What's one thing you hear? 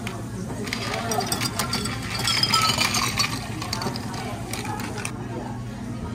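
Ice cubes clatter into a glass.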